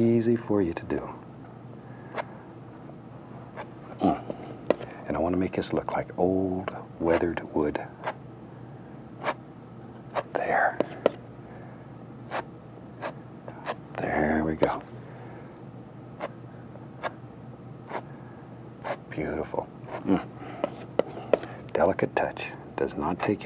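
A painting knife taps and scrapes against a canvas.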